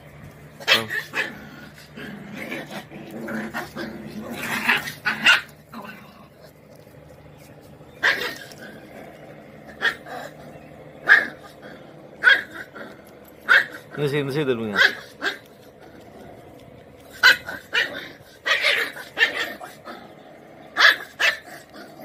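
Puppies yip and bark in short, sharp bursts close by.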